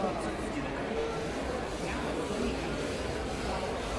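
A luggage cart rolls across a hard floor.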